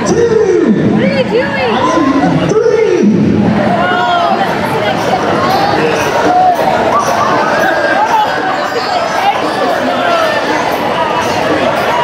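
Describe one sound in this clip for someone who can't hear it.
A large crowd of children shrieks and cheers loudly.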